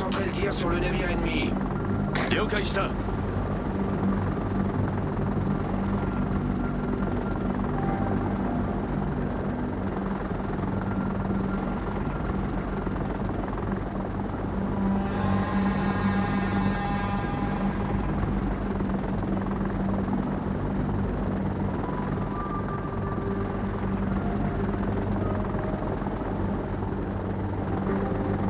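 Propeller plane engines drone steadily in a low hum.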